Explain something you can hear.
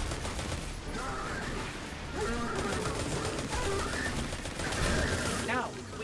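Explosions blast and rumble.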